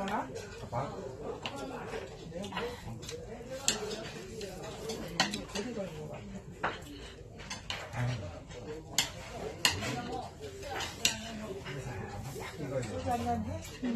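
Metal chopsticks click against dishes.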